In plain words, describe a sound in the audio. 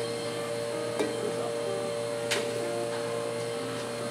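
A metal spatula scrapes on a hot griddle.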